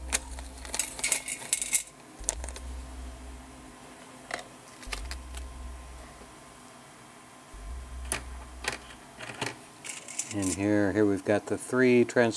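Small metal parts rattle and clink in a metal tray.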